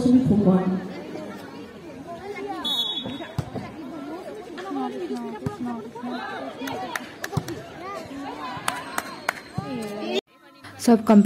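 A crowd of young people chatter and call out outdoors.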